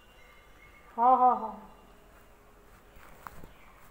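A man speaks loudly on a phone nearby.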